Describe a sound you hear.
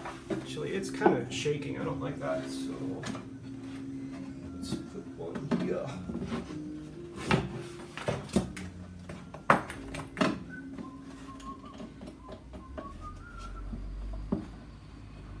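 A tool knocks and clatters against wood.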